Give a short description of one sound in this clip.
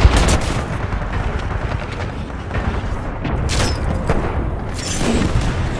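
Gunfire crackles in rapid bursts nearby.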